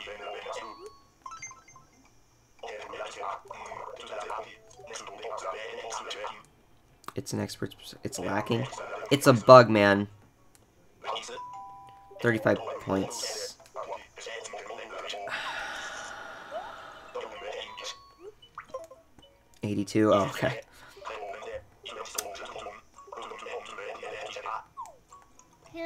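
A handheld game console plays quick, chirpy character babble through its small speaker, in short bursts.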